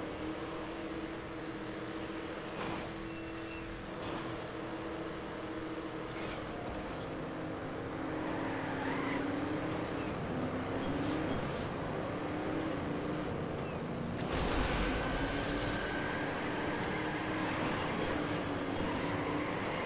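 Racing car engines whine and roar steadily.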